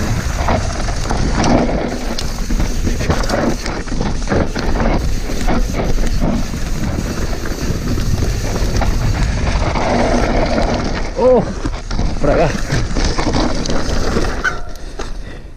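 A mountain bike's tyres rattle and crunch over a rough dirt trail.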